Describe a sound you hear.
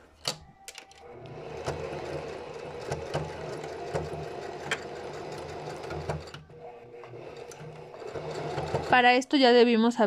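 A sewing machine whirs steadily.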